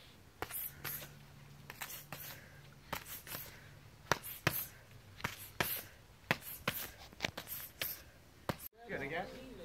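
Gloved fists smack against hand pads in quick bursts.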